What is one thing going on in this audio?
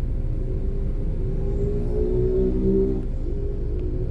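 A motorcycle engine whines and rises in pitch as it passes close by.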